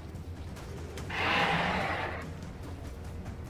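Thunder rumbles briefly.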